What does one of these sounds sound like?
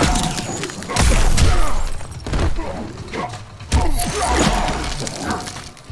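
Ice cracks and shatters in bursts.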